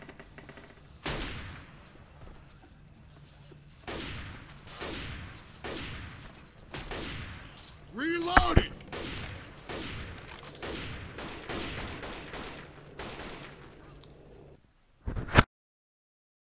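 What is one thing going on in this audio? Blows land again and again with sharp, heavy thuds.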